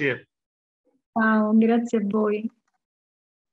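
A middle-aged man talks calmly over an online call.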